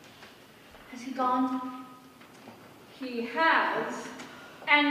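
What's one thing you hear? A woman sings sustained notes from a distance in a large echoing hall.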